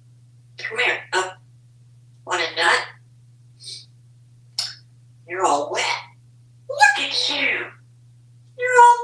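A parrot chatters and squawks in bursts close by, mimicking speech and whistles.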